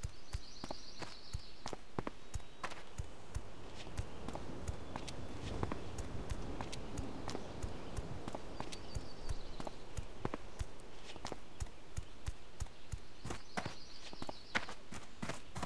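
Footsteps tap steadily on a stone path.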